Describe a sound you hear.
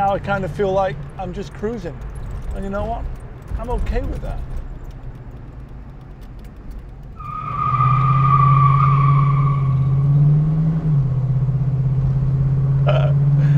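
A car engine rumbles steadily, then roars louder as the car speeds up.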